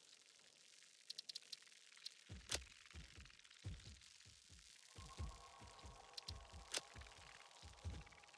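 Short clicks sound.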